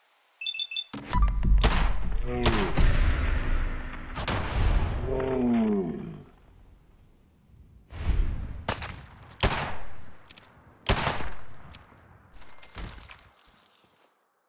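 Heavy revolver shots boom with echoing blasts.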